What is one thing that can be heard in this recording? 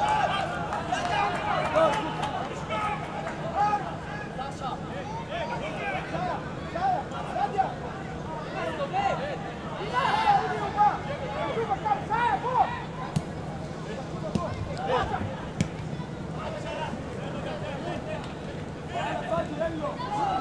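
A football is kicked with dull thuds now and then.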